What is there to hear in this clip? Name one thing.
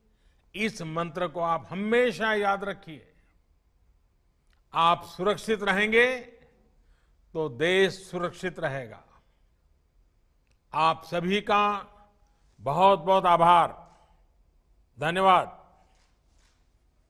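An elderly man speaks calmly and clearly into a microphone, in short phrases with pauses.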